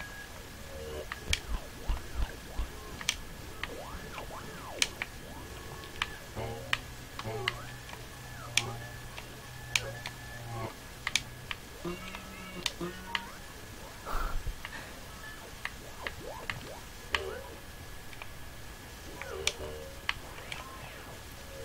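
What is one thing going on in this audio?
Short game sound effects click and chime as a character jumps and climbs.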